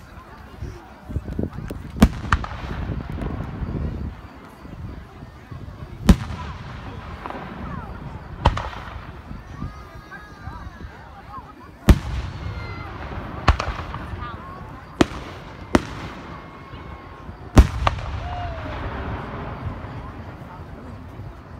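Fireworks crackle and rumble after each burst.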